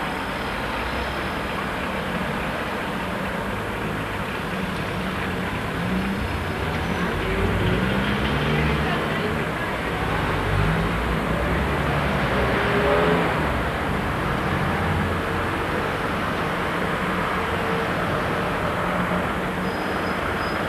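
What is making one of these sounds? Car engines hum as cars pass close by.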